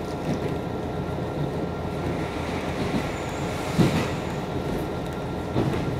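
A passing train rushes by close outside.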